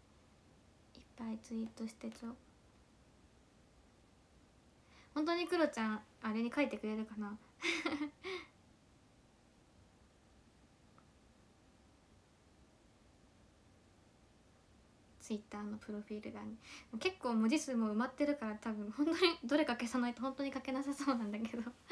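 A young woman talks cheerfully and closely into a microphone, in bursts with pauses.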